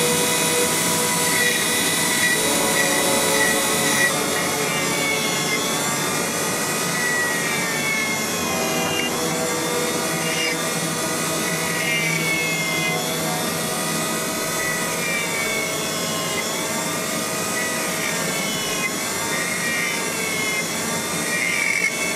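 A small rotary tool whines steadily, its pitch dipping and rising as it grinds into wood.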